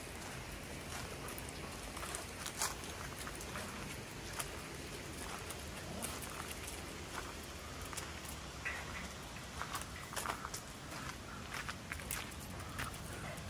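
Dogs' paws patter and scuff on gravel and stone.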